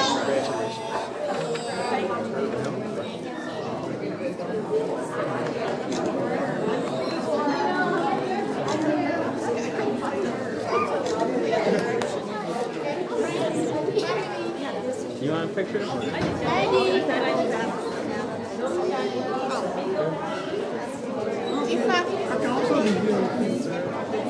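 A crowd of adults chatters and murmurs.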